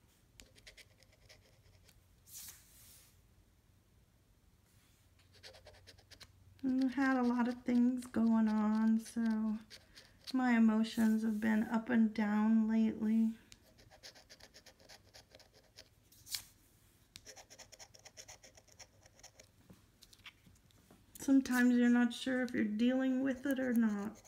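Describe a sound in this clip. A coin scrapes across a scratch card.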